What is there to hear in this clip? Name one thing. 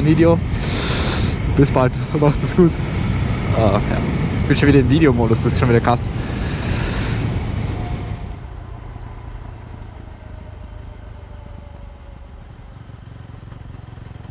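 A motorcycle engine revs hard, rising in pitch through several gear changes, then settles to a low hum.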